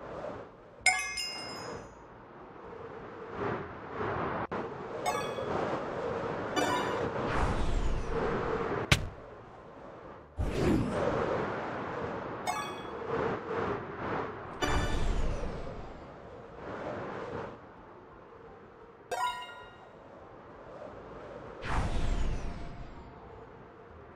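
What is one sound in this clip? Wind rushes and whooshes during flight.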